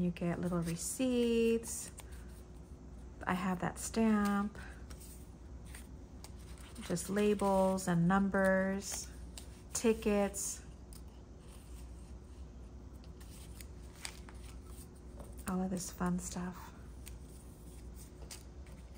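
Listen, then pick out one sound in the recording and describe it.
Paper scraps rustle softly as hands sort through them.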